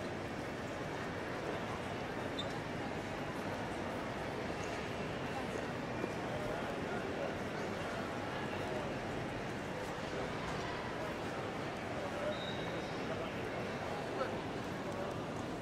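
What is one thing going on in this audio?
A murmur of distant voices and footsteps echoes through a large hall.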